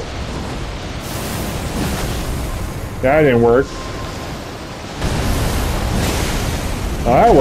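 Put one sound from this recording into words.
Rocks crash and scatter with heavy rumbling.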